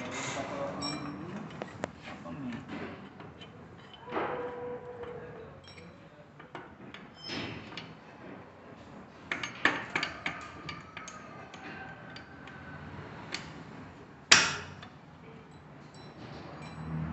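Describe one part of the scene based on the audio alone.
Metal tools clink and scrape against motorcycle engine parts.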